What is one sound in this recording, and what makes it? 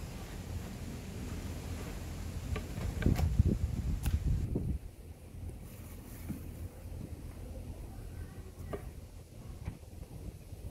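A knife taps on a cutting board as a tomato is sliced.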